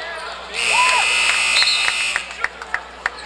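A referee's whistle blows a long shrill blast.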